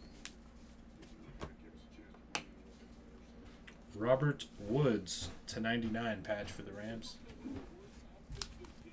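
Trading cards click and rustle as they are shuffled by hand.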